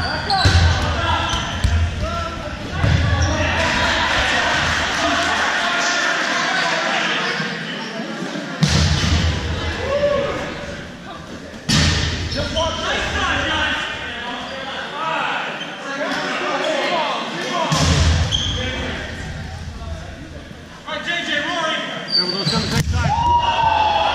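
Voices of a crowd of young people chatter and shout through a large echoing gym.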